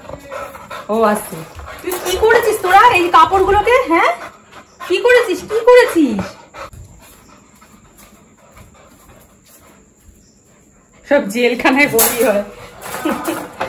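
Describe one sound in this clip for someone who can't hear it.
A dog whines and yelps close by.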